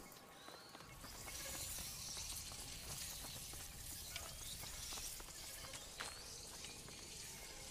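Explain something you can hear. A fire crackles in a brazier.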